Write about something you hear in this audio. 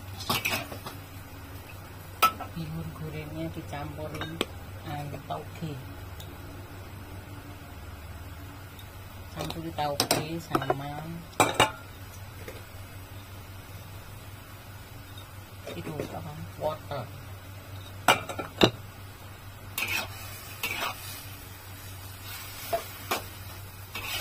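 A metal spatula scrapes and clangs against a wok.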